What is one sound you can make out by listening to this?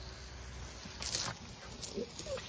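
Water sprays and hisses from a sprinkler.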